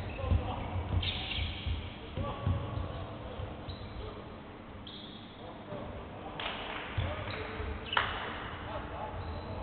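Men shout calls across a large echoing hall.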